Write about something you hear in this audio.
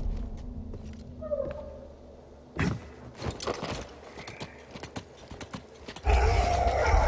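Hands and boots scrape and knock against rock while climbing.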